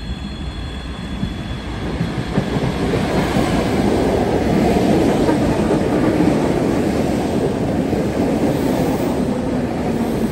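A train approaches and rumbles past close by, loud and steady.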